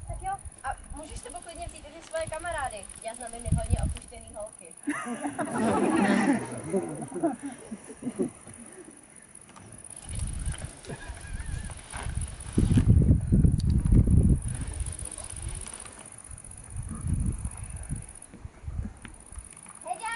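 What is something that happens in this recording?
Young girls talk and call out outdoors.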